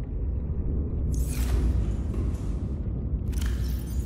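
A metal locker door swings shut with a whoosh.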